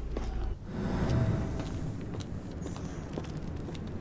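Footsteps tread slowly on a stone floor.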